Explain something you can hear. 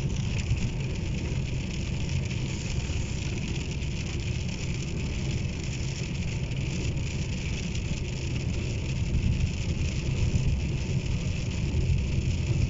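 Rain patters steadily on a car's windscreen.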